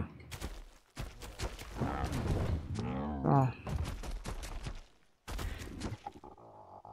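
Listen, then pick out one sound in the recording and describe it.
A large winged creature flaps its wings in quick beats.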